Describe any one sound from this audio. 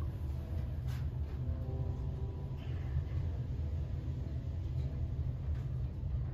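A lift hums and rumbles steadily as it rises.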